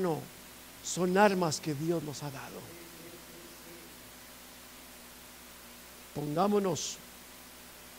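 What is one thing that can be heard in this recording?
A man speaks emphatically through a microphone in a room with a slight echo.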